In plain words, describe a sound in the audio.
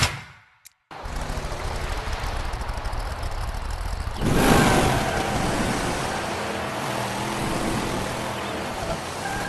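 A truck's engine revs and roars steadily.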